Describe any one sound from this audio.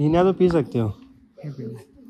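A young man speaks close by with animation.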